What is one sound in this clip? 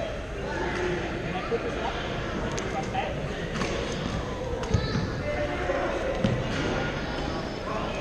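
Many players call out and chatter in the echoing hall.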